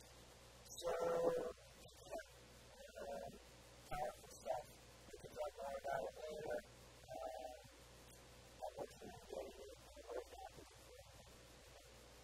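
A man speaks calmly and haltingly through a microphone, with pauses.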